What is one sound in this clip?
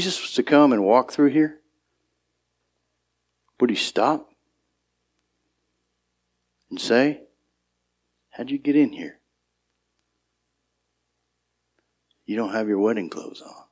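A man speaks calmly in short phrases with long pauses, heard through a microphone.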